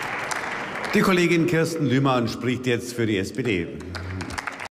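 An older man speaks calmly into a microphone in a large hall.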